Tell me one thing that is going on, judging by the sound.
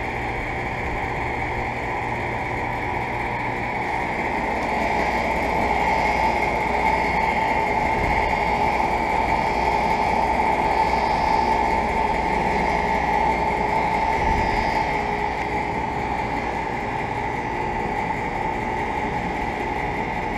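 An air conditioner unit hums steadily with a whirring fan, louder up close.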